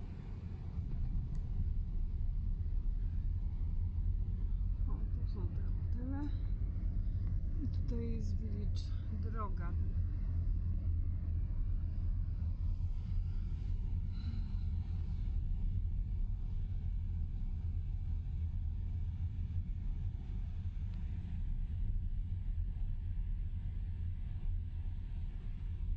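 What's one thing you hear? A car engine hums and tyres rumble steadily on the road from inside the car.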